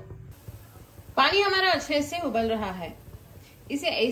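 Water bubbles at a rolling boil in a pot.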